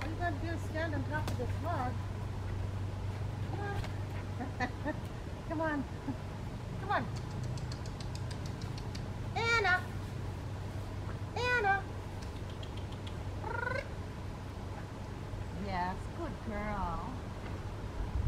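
A woman talks to a dog some distance away outdoors.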